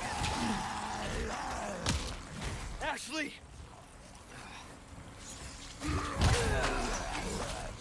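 A man shouts out sharply.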